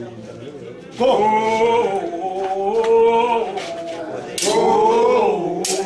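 A group of men chant loudly.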